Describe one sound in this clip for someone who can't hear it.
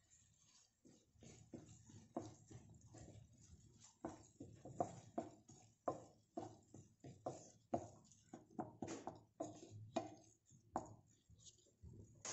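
A wooden spatula scrapes and stirs food in a pan.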